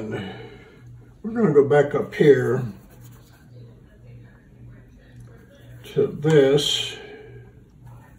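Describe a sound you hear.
A paintbrush dabs and swirls softly in wet paint.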